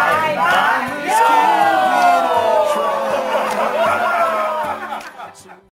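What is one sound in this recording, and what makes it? A group of men and women sing together loudly, close by.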